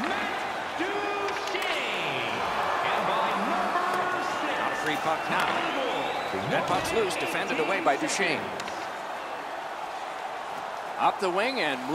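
A large crowd murmurs in an arena.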